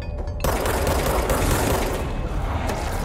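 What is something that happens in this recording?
A gun fires in rapid shots.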